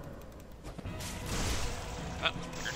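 A huge beast lets out a deep roar.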